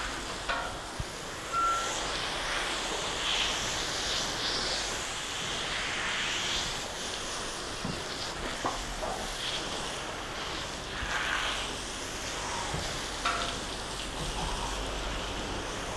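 A hose sprays water steadily onto a horse.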